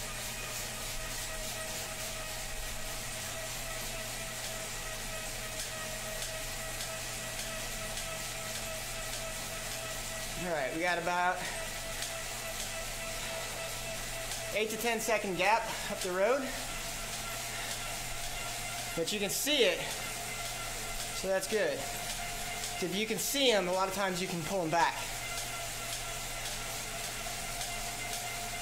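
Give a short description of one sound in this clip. A bike trainer whirs steadily.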